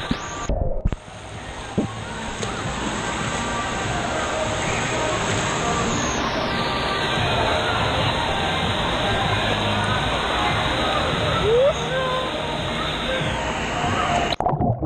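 Waves crash and surge loudly in a large echoing hall.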